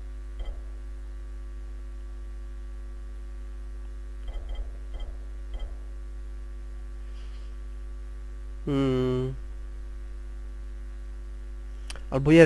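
Soft menu clicks sound as settings are switched.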